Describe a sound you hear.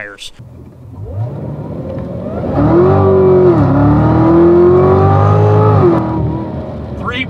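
A sports car engine roars loudly, climbing in pitch as it accelerates hard.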